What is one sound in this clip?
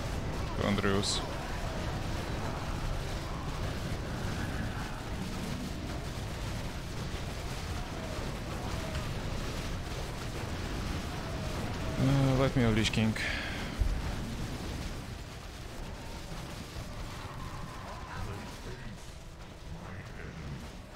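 Battle sounds of a video game clash and rumble steadily.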